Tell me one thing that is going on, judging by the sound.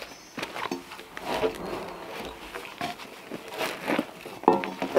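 A saw rasps back and forth through a log.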